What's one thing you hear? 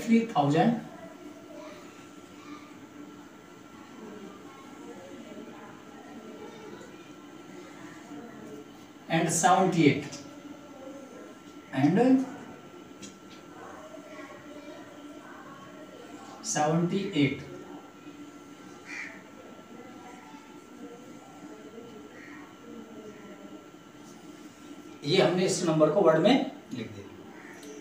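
A man speaks in short bursts, calmly explaining.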